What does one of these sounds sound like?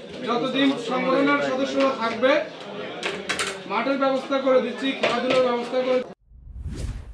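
A young man speaks loudly to a room, heard close.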